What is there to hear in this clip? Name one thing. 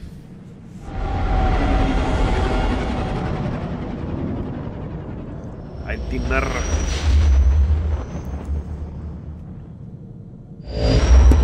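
A spaceship engine roars and rumbles.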